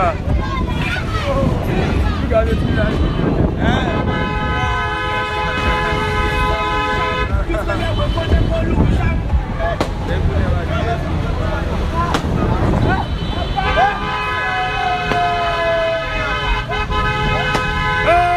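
A crowd of men shout and talk loudly nearby.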